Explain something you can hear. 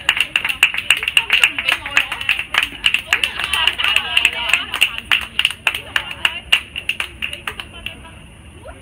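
Hands clap rapidly at a distance.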